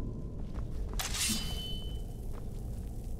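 A sword is drawn from its sheath with a metallic ring.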